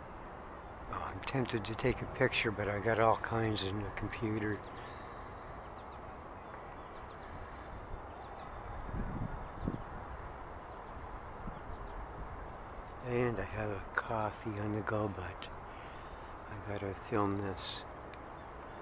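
A gull calls with loud, repeated yelping cries nearby.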